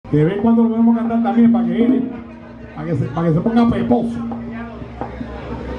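A man sings into a microphone, amplified and close.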